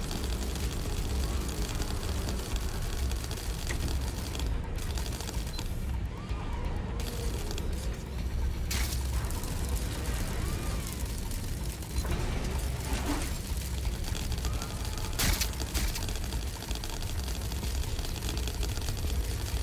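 A small robot's metal legs patter and clatter as it scuttles.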